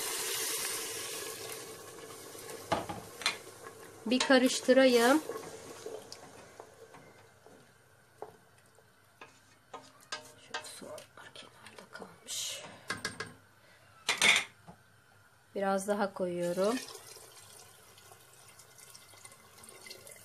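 Water pours and splashes into a pot.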